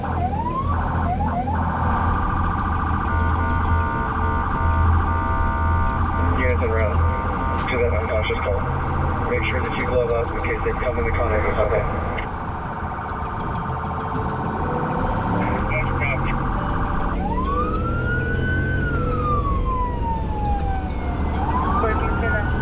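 A police siren wails, rising and falling.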